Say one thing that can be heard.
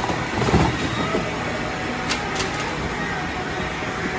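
A plastic basket clatters against a cardboard box.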